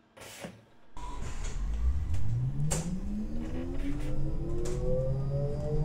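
A bus engine hums and rises steadily in pitch as it speeds up.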